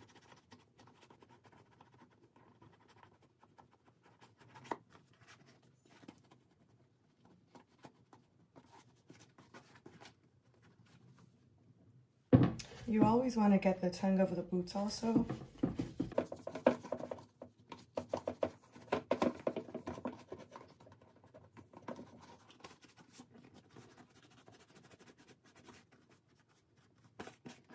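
Hands rub and squeak against a leather boot.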